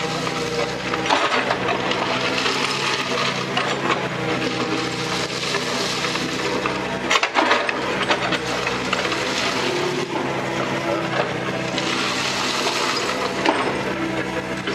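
Gravel scrapes and crunches under a steel bucket.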